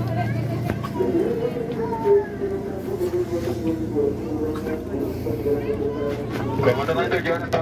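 A crowd of nearby passengers chants loudly together.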